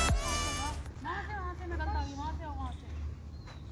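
A woman speaks at a distance outdoors.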